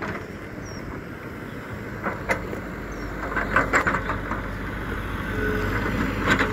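An excavator engine rumbles steadily nearby.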